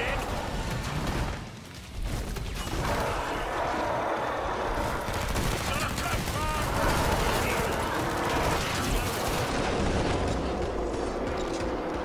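A shotgun booms.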